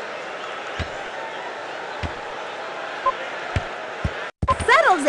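A soccer ball is kicked with dull thumps.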